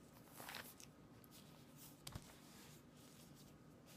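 Paper pages rustle.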